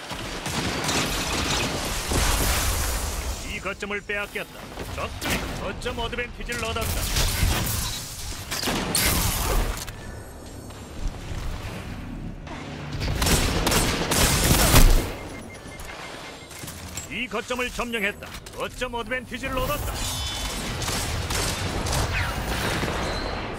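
Energy blasts crackle and explode.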